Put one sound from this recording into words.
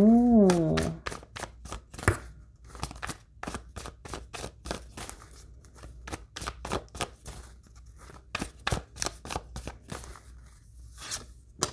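A deck of cards is shuffled with quick, soft flicks.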